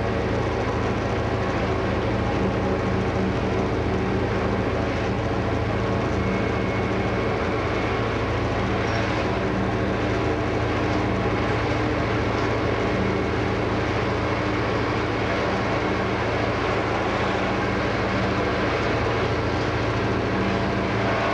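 Train wheels rumble and clack over the rails.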